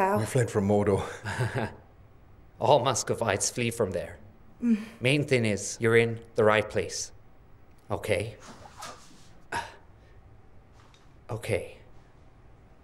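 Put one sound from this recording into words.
A man speaks cheerfully and calmly nearby.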